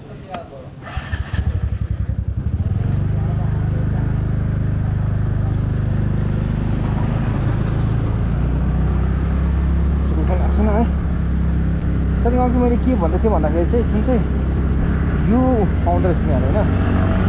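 A motorcycle engine starts up and hums steadily as the bike rides along.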